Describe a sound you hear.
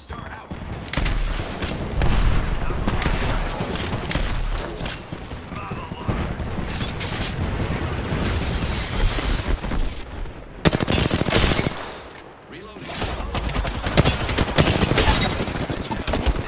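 Gunfire crackles in rapid bursts from a video game.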